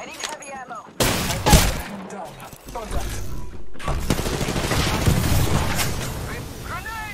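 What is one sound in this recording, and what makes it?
Gunshots ring out in quick, sharp bursts.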